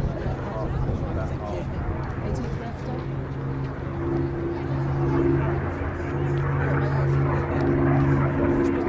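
A propeller plane's engine drones overhead with a steady, throbbing hum.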